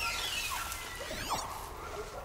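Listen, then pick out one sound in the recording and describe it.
A shimmering electronic sweep rings out.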